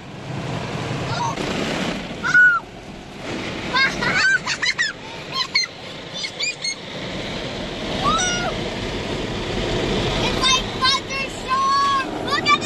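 Car wash brushes and water spray scrub loudly over a car roof.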